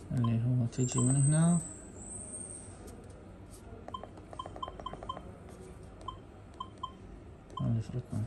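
Buttons click under a thumb.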